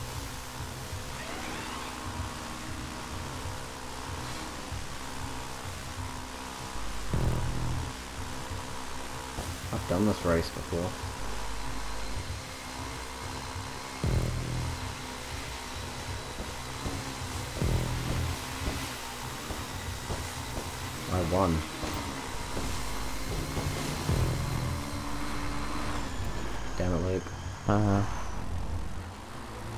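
A jet ski engine drones steadily.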